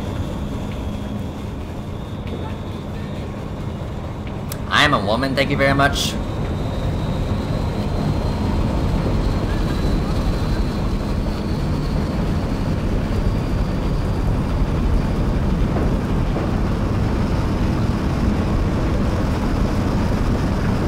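Low rumbling and scraping sound as someone crawls through a narrow metal duct.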